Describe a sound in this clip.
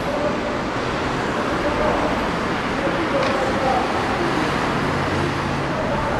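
Cars drive past on a street.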